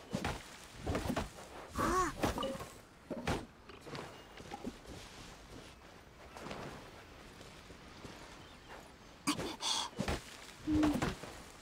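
A sword slashes with a bright magical whoosh.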